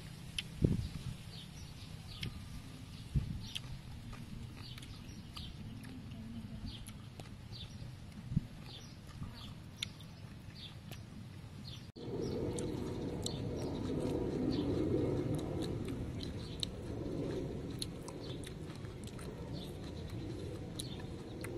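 A boy crunches and chews crisp fried insects up close.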